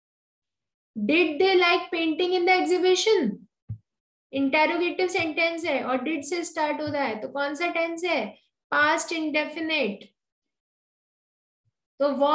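A young woman speaks calmly through a microphone in an online call.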